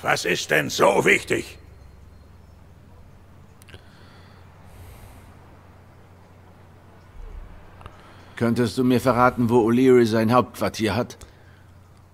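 A man talks close into a microphone.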